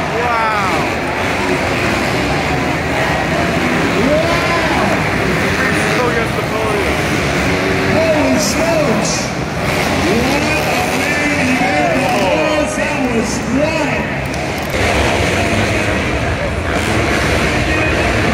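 Dirt bike engines rev and whine around a track.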